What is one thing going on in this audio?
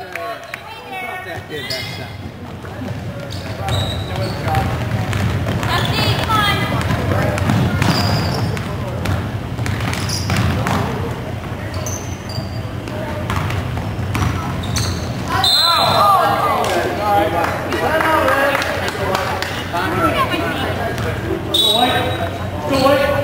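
A crowd of adults and children shouts and cheers from close by.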